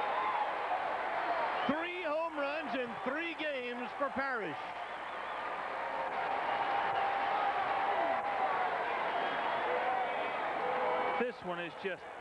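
A large crowd cheers and applauds in a big open stadium.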